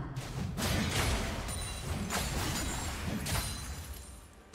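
Game spell and sword effects clash and burst in a busy fight.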